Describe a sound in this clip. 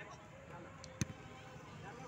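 A volleyball is struck with a dull slap.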